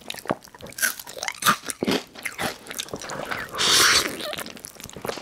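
A man chews wetly and crunches close to a microphone.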